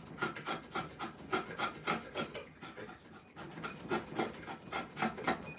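A mallet strikes a chisel in quick, steady blows, cutting into wood.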